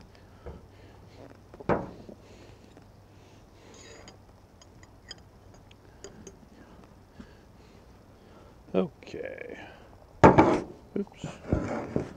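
A metal fork clinks against a glass jar.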